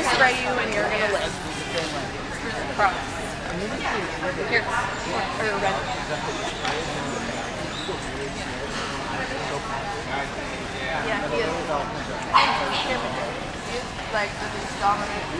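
A crowd of men and women chats in a large echoing hall.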